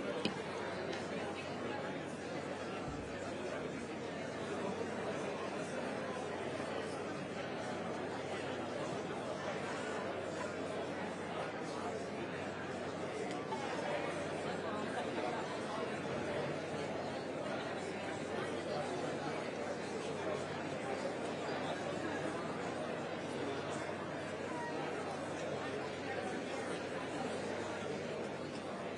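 A large audience chatters and murmurs steadily in an echoing hall.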